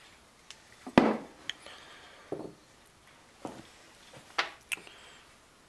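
Small metal parts clink as they are set down.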